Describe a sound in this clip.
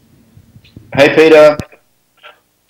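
A man speaks through an online call over loudspeakers.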